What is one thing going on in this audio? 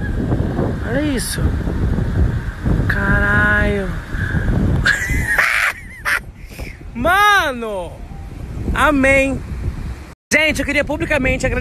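A child shouts and squeals playfully nearby.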